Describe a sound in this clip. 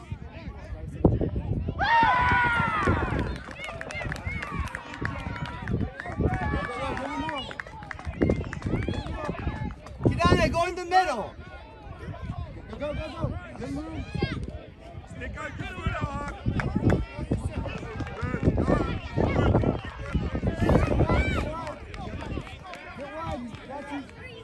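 Adults and children shout and cheer from the sidelines, outdoors.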